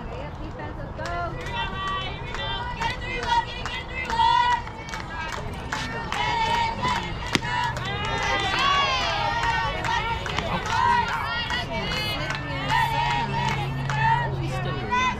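Young women shout and cheer across an open field.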